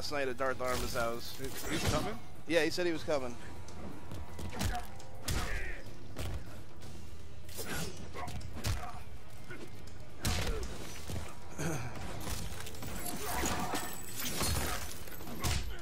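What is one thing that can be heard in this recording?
Ice cracks and shatters.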